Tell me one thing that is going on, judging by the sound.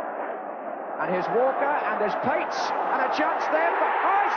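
A stadium crowd erupts in cheers and whistles.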